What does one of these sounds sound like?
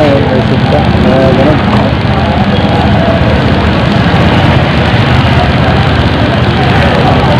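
A vehicle engine idles, heard from inside the vehicle.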